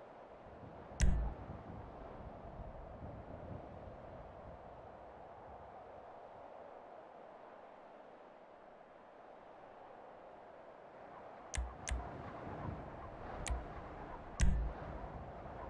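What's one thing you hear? Short electronic menu beeps sound now and then.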